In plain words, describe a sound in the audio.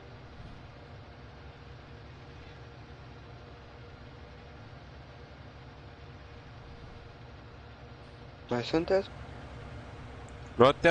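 A tractor engine hums steadily at low speed.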